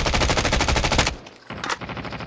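An automatic rifle fires a rapid burst.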